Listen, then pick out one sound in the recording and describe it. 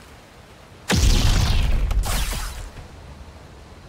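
A lightsaber blast lands with a deep booming rumble.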